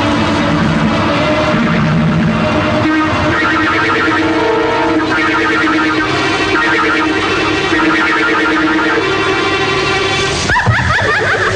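A man laughs loudly and menacingly.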